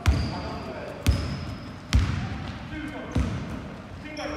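A basketball bounces with loud thumps on a wooden floor in an echoing hall.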